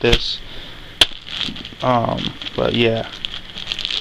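Plastic wrapping crinkles under a hand.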